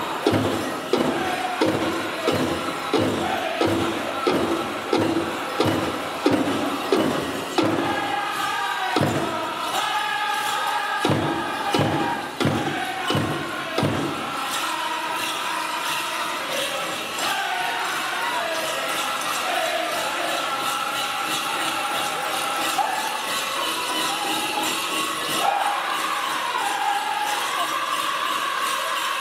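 Bells on dancers' legs jingle with each step.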